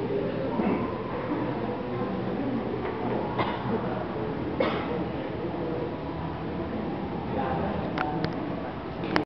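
A man speaks to an audience from a short distance.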